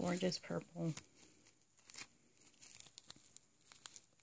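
A plastic bag crinkles softly between fingers.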